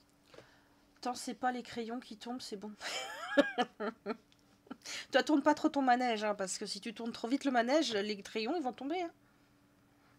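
A young woman talks with animation close to a microphone.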